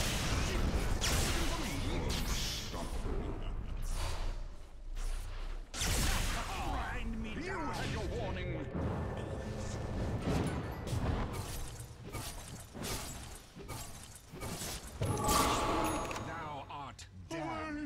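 Weapons strike and clash in quick blows.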